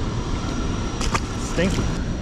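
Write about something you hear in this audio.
A fish drops into the water with a small splash.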